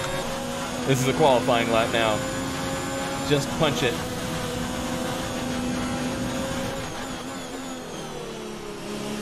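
A racing car engine whines at high revs, rising and dropping as the gears shift.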